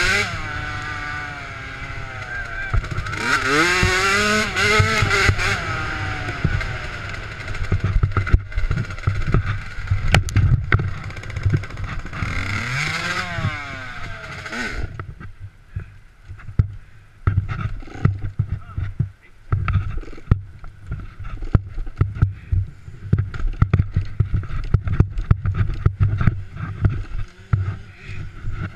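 A motorbike clatters and thumps over rough ground.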